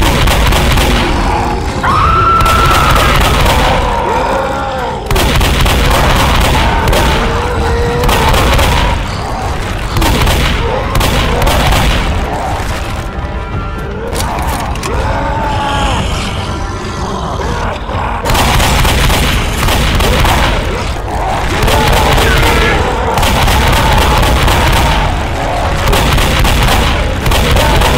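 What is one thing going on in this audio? Shotgun blasts boom one after another.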